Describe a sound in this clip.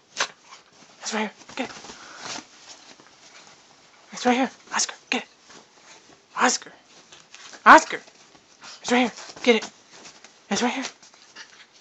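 A small dog yips and growls playfully.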